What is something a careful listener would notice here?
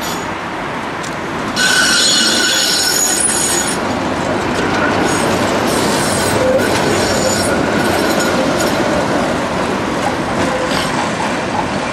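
A tram rumbles past close by, wheels grinding and squealing on the rails.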